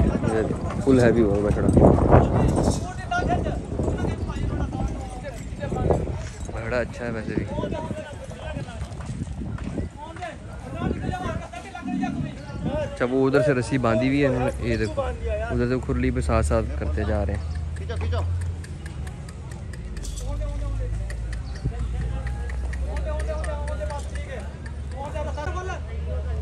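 Men talk and call out nearby in a lively crowd.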